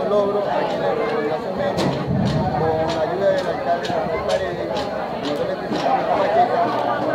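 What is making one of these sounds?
A crowd of children chatters in the background outdoors.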